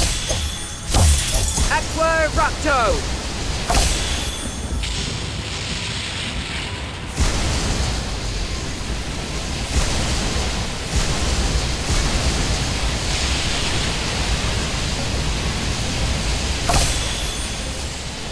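A magic spell blasts with a rushing whoosh.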